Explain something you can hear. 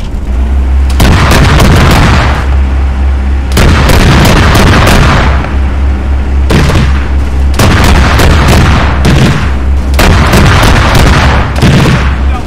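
Loud explosions boom one after another nearby.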